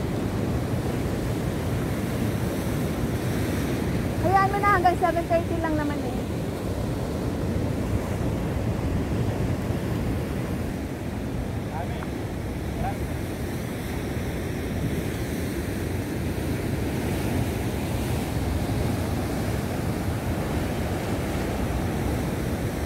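Waves crash and surge against rocks outdoors.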